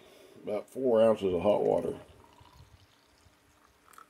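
Water pours into a mug.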